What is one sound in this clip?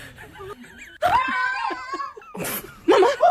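A woman screams loudly.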